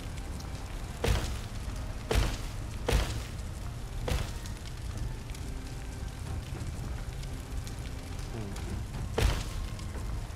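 Soft interface clicks sound now and then as menu items are selected.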